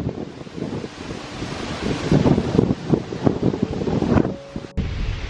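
A plastic tarp flaps and rustles in the wind.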